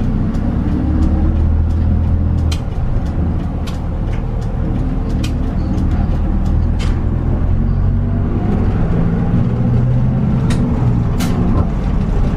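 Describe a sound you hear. Fittings inside a moving bus rattle and click.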